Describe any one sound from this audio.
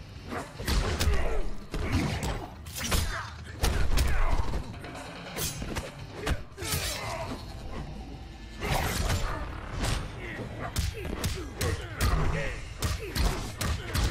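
Punches and kicks land with heavy thuds and smacks again and again.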